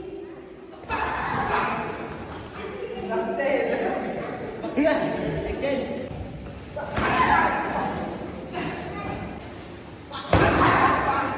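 Kicks thump hard against padded body protectors.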